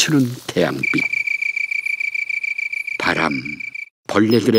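An insect trills with a steady, fast buzz.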